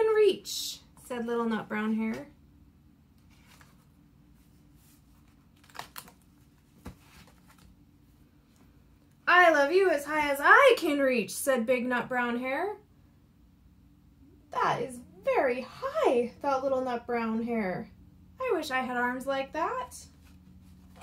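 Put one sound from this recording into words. A woman reads aloud with expression, close by.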